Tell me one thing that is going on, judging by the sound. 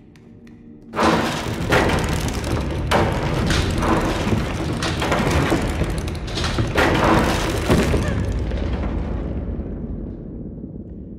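Arms burst out of the walls with a loud, rushing crash that slowly fades.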